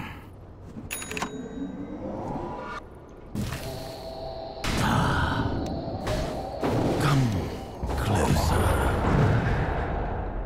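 Game spell effects and clashing weapons ring out.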